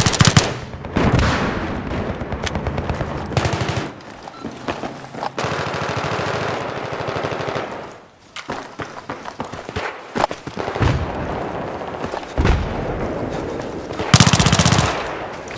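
Automatic gunfire rattles in short rapid bursts.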